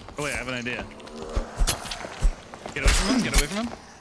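A sword strikes a body with a wet slash.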